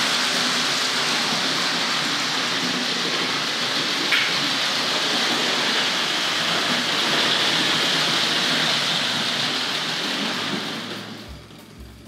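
A model train rumbles and whirs along its track.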